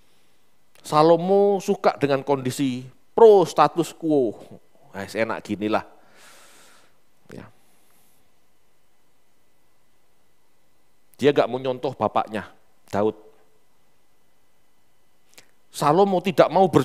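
A man speaks with animation through a headset microphone, pausing between phrases.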